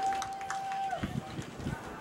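A softball bat strikes a ball.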